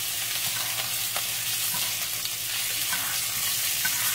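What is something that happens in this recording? A spoon scrapes against a pan.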